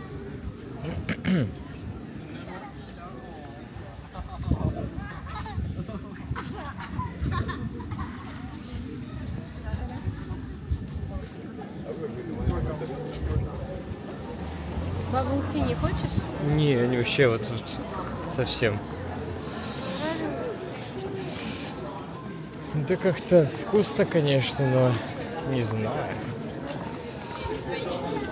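Footsteps tap on a wet pavement outdoors.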